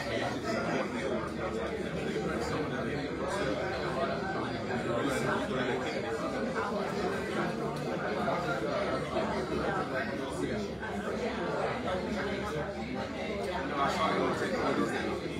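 Many men and women chatter at once in a large room.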